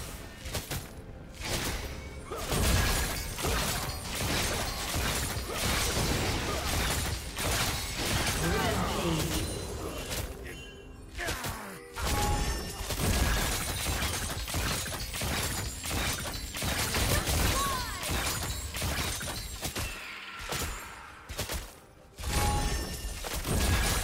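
Game spell effects crackle and blast in quick bursts.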